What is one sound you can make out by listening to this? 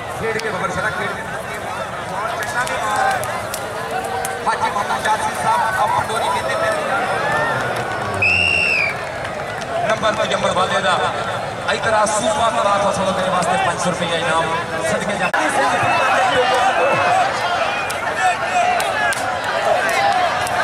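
A large crowd murmurs and cheers outdoors.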